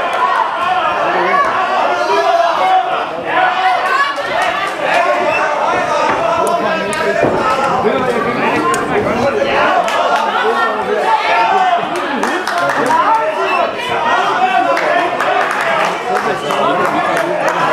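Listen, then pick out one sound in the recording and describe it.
Boxing gloves thud against bodies in quick punches.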